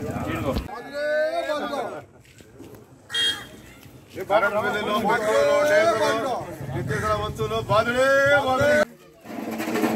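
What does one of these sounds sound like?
A group of men chant slogans loudly together outdoors.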